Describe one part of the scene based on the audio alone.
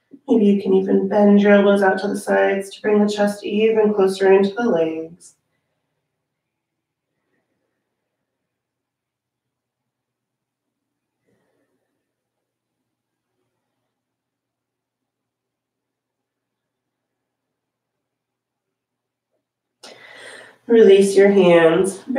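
A woman speaks calmly and clearly close to a microphone, with long pauses.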